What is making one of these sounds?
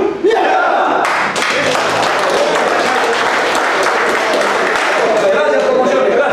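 A group of men clap their hands.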